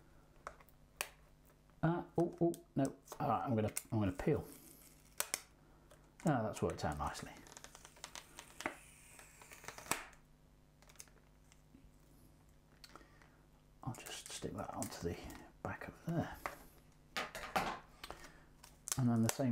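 Plastic packaging crinkles and crackles in hands.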